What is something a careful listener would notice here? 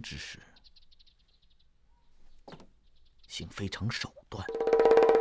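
A middle-aged man speaks calmly and slyly, close by.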